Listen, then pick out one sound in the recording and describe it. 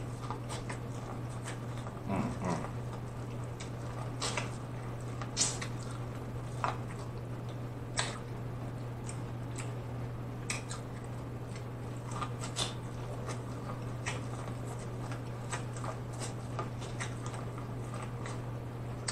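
A man bites and chews corn on the cob with crisp, wet crunches close to a microphone.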